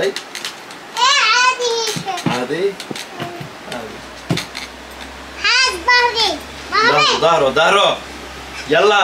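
A young boy squeals with laughter.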